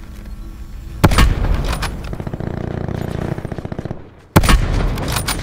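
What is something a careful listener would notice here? A sniper rifle fires loud shots.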